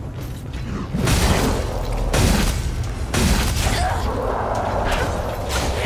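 Heavy blade strikes land with loud whooshing bursts.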